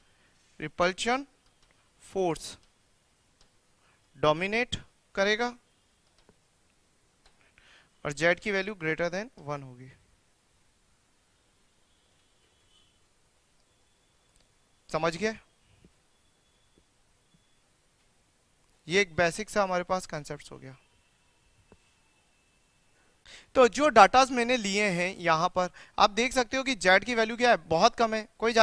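A man speaks calmly and clearly into a close microphone, in bursts with pauses.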